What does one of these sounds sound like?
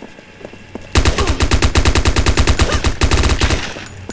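A gun fires in a rapid burst of loud shots.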